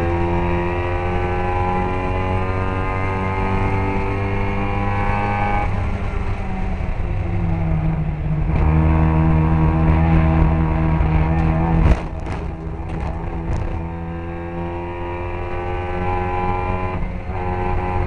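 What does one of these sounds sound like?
Other racing car engines drone nearby.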